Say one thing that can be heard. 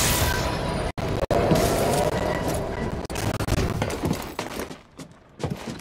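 Footsteps hurry across a metal floor.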